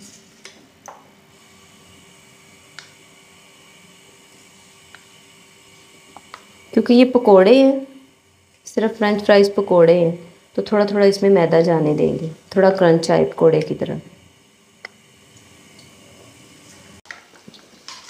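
Oil sizzles and crackles as food fries in a pan.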